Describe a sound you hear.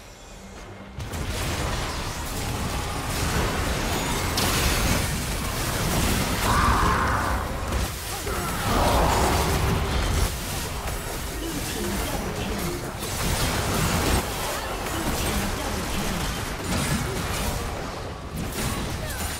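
Magic spells crackle and blast in a busy fight.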